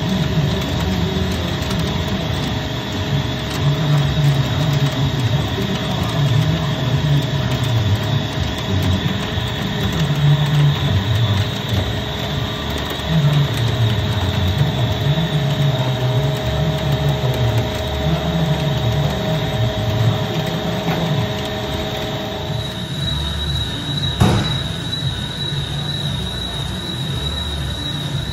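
A CNC lathe cuts a rotating steel shaft with a deep rumble.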